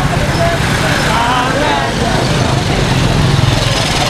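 A motorcycle engine idles and rumbles close by.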